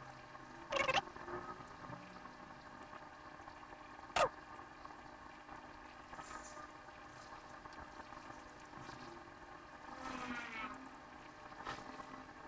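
A soldering iron hisses faintly as it melts solder.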